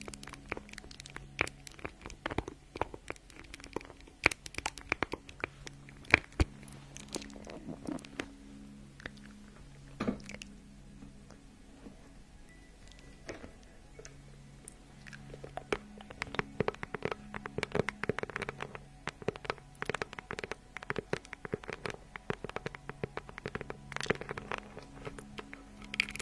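A young woman whispers softly and closely into a microphone.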